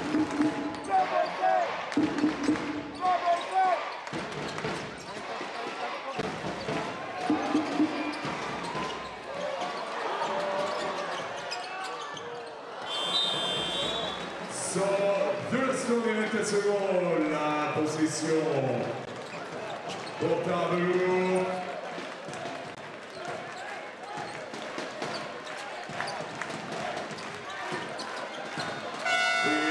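A crowd cheers and chants loudly in a large echoing arena.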